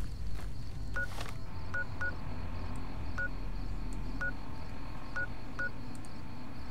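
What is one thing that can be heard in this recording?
A handheld electronic device beeps in short, quiet blips.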